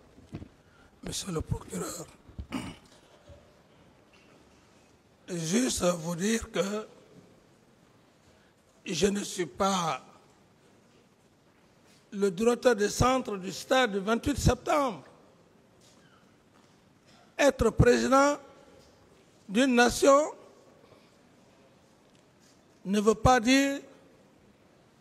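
A man speaks calmly into a microphone in short bursts with long pauses.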